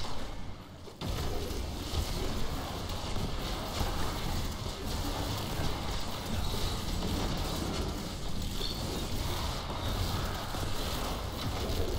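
Game combat sounds of spells and blows clash continuously.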